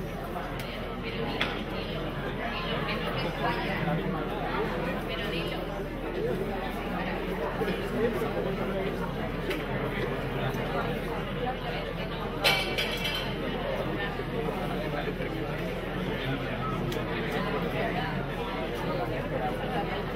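A crowd of men and women chatter in an echoing hall.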